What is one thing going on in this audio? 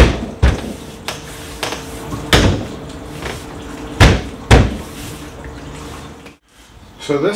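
A window frame knocks and thumps against a trailer's wall.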